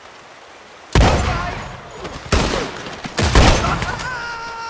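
A gun fires several loud shots that echo outdoors.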